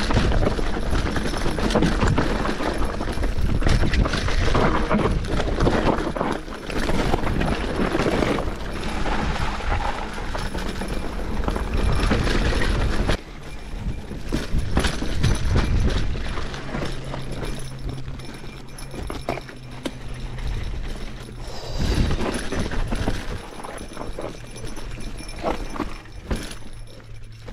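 Bicycle tyres crunch and rattle over a rocky dirt trail.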